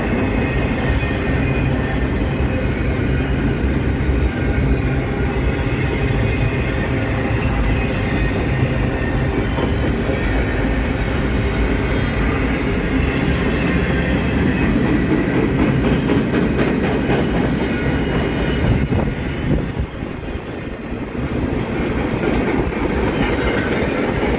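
A long freight train rumbles and clatters steadily along the tracks nearby.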